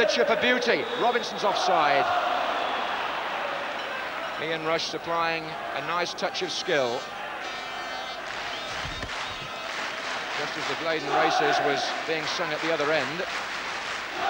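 A large crowd sings loudly in unison.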